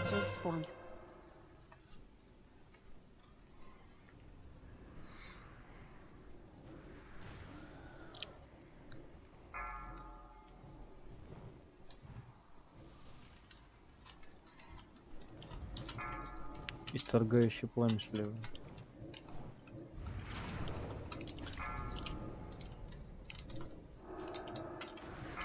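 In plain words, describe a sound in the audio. Magical spells chime and whoosh.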